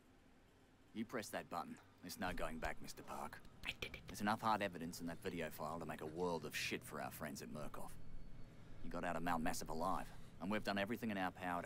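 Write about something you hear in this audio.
A young man talks and laughs into a microphone.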